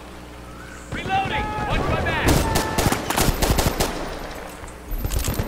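A rifle fires in short, rapid bursts.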